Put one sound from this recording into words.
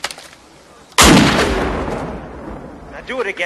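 A rifle fires with a loud bang that echoes away.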